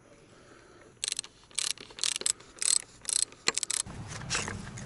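Plastic pipe fittings click and snap as they are pushed together.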